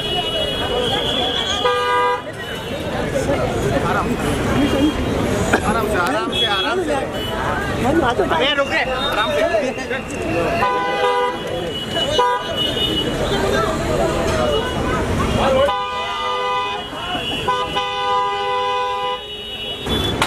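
A crowd of men shout and call out excitedly close by.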